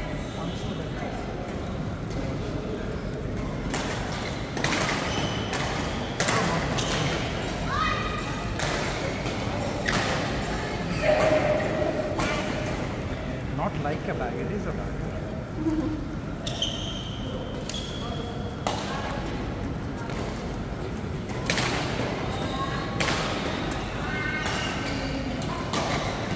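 Shuttlecocks pop sharply off badminton rackets, echoing in a large hall.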